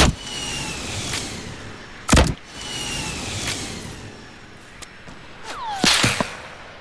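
Loud thuds of a game's hits land on wood, one after another.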